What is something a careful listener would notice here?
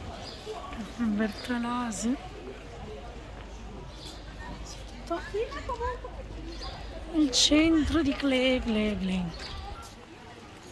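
A woman talks nearby outdoors.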